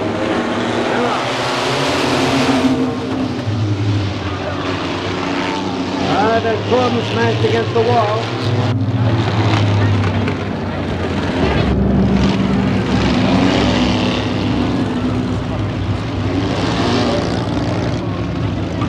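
Racing car engines roar loudly nearby.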